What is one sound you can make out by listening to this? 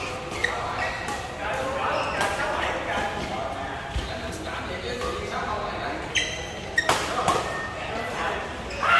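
Shuttlecocks are struck with rackets in sharp pops that echo through a large hall.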